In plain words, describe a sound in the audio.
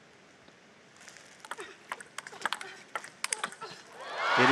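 A table tennis ball is struck back and forth with paddles in a rally.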